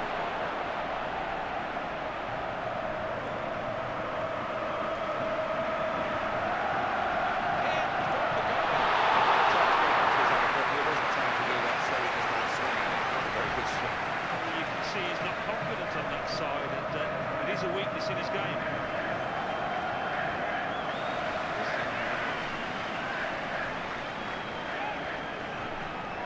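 A large stadium crowd cheers, swelling to a roar before settling back.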